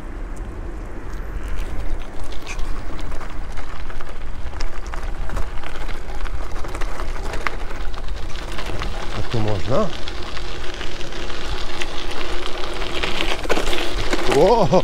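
Wind rushes outdoors.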